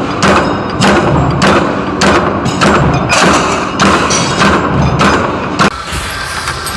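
A metalworking machine presses steel washers in rhythmic bursts.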